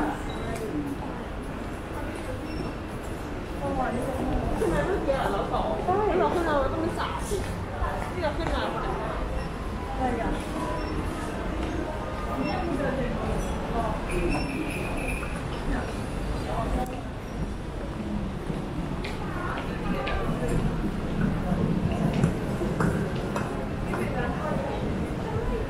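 Voices of people murmur and chatter in a large, echoing indoor hall.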